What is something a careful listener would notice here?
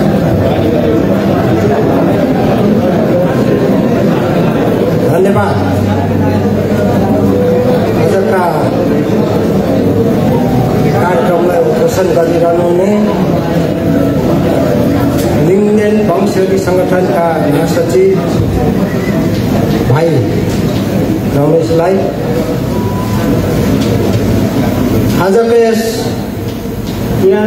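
A crowd of men and women chatters loudly in a large echoing hall.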